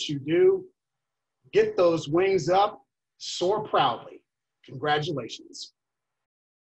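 A middle-aged man speaks calmly and clearly into a microphone, heard up close.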